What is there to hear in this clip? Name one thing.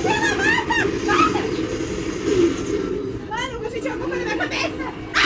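Arcade game sound effects play loudly through speakers.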